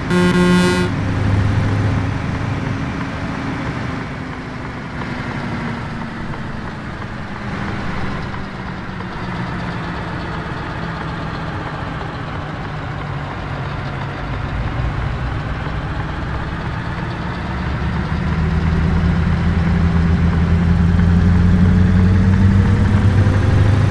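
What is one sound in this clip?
A truck engine hums steadily, rising and falling as it pulls along.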